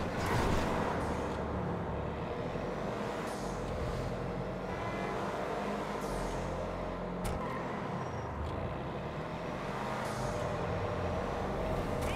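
A car engine roars steadily as a vehicle speeds along.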